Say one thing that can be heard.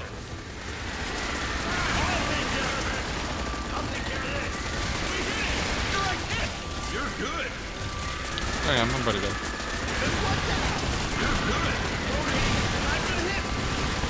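Explosions boom and debris clatters.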